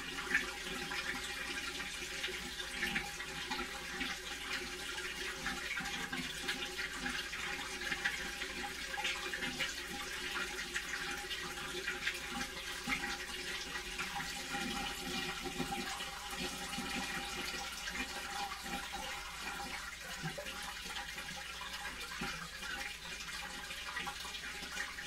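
A front-loading washing machine churns with a low hum.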